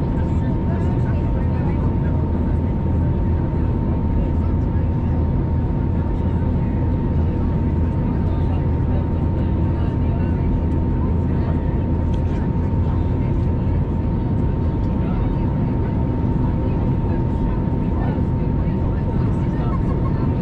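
Jet engines roar steadily with a low, loud rumble inside an airliner cabin in flight.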